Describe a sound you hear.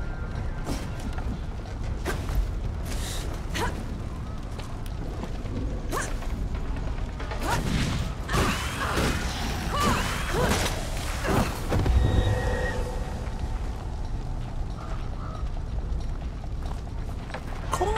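Fire crackles and roars nearby.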